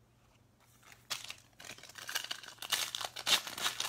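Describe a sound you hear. A foil card pack crinkles as hands tear it open.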